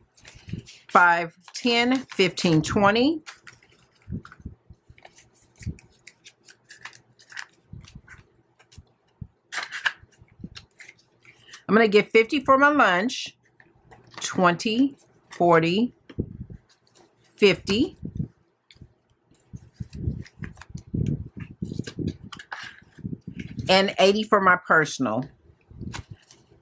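Paper banknotes rustle and crinkle close by.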